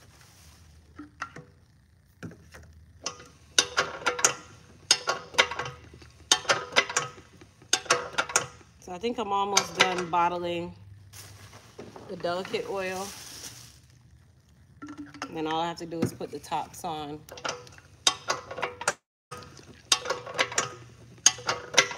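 A filling machine's lever clacks and knocks in quick bursts.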